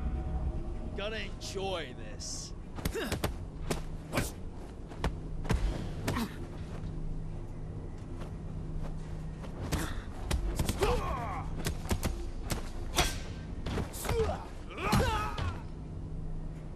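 A man grunts with effort during the fight.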